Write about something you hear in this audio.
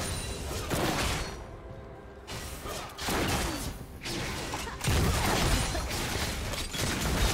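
Spell effects crackle and burst in bursts of game combat.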